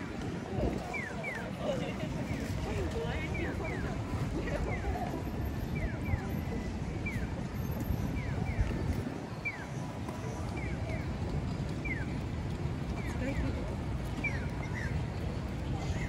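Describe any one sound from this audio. A crossing signal chirps in quick repeated bird-like tweets.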